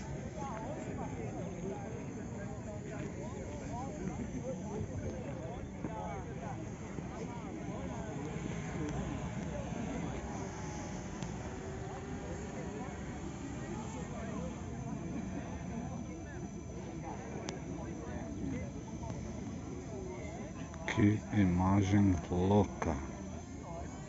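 A crowd of people chatters outdoors nearby.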